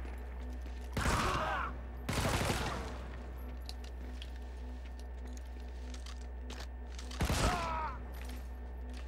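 Gunfire bursts out and echoes.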